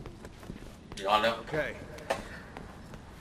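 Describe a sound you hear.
A young man speaks briefly and quietly close to a microphone.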